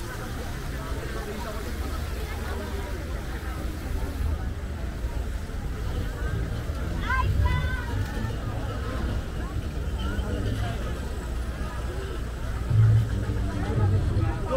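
A crowd of men and women murmurs and chatters outdoors.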